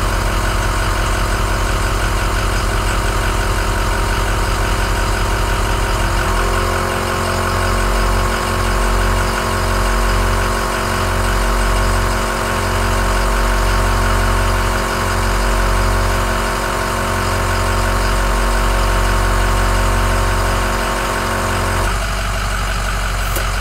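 An air compressor hums and rattles steadily.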